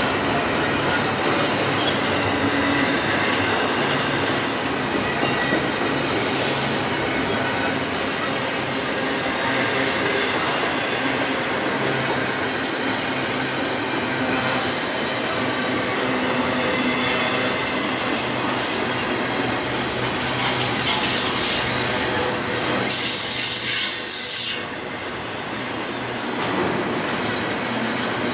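A long freight train rumbles past close by, wheels clattering and squealing on the rails.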